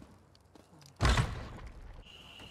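A heavy wooden door opens with a loud thud.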